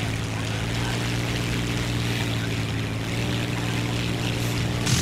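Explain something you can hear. A piston-engined fighter plane's engine drones steadily.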